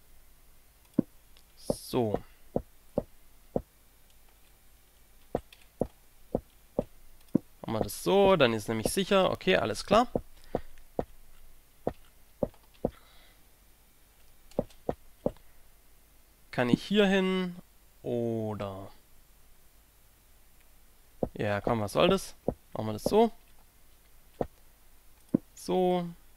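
Footsteps tap on stone at a walking pace.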